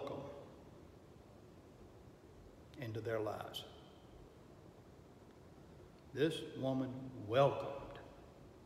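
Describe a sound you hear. An older man speaks calmly in short phrases, close by.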